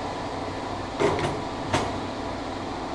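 Metal tools clank in a drawer.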